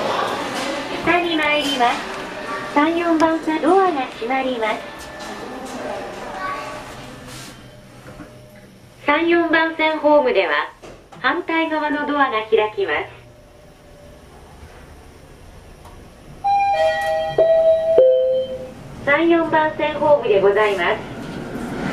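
A recorded woman's voice makes announcements through a loudspeaker.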